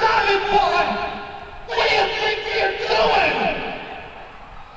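A man sings loudly into a microphone.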